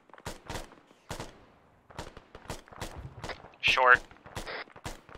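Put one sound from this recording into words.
Gunshots crack repeatedly in quick bursts.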